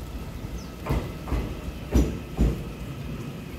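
Train wheels clunk over rail joints.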